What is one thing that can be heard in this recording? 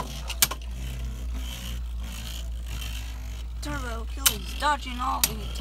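Spinning tops collide with sharp clacks.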